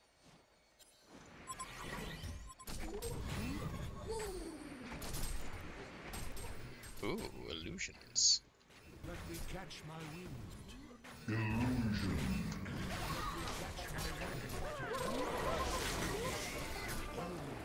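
Magic spells crackle and blast in a fierce fight.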